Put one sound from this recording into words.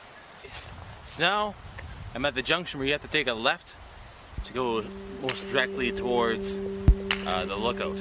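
A young man talks with animation close to the microphone, outdoors.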